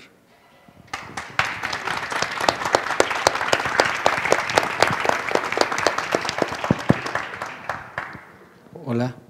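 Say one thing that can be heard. An audience applauds with steady clapping.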